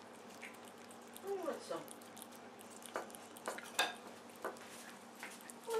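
A cat chews and crunches food with wet smacking sounds.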